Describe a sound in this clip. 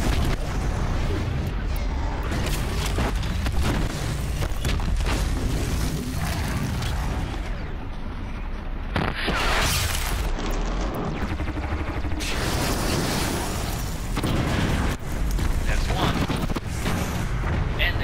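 Explosions boom and crackle in a fight.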